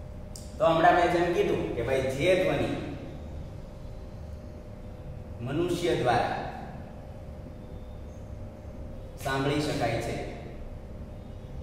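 A young man speaks calmly and clearly nearby.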